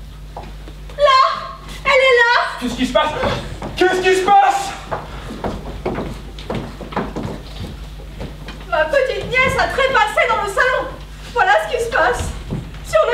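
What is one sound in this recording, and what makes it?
A man speaks loudly and theatrically in a large hall.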